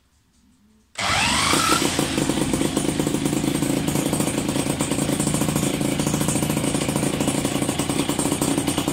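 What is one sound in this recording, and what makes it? A small moped engine starts and idles with a steady, rapid putter.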